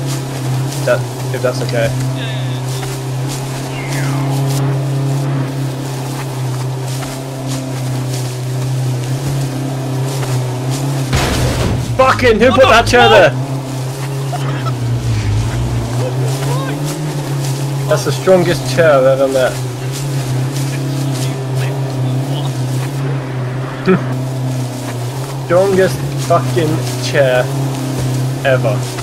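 A vehicle engine drones steadily as it drives over rough ground.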